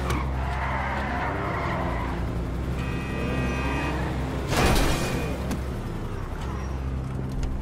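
A sports car engine revs and roars.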